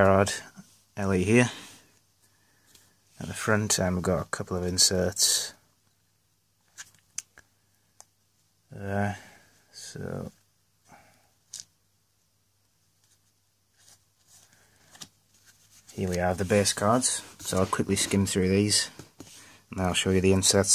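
Trading cards rustle and flick as hands handle them.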